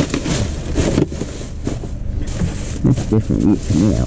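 A full bag thumps into a plastic wheelie bin.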